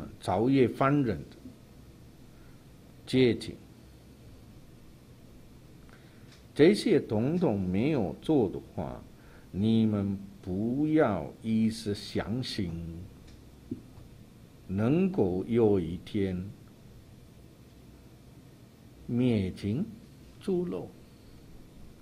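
An older man speaks calmly into a microphone, in short phrases with pauses.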